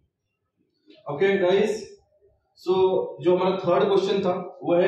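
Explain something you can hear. A young man speaks clearly into a microphone, explaining.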